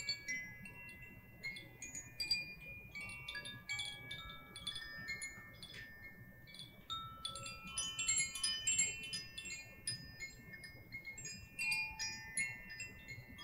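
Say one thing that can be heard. Small chimes tinkle and ring with bright, clear tones throughout.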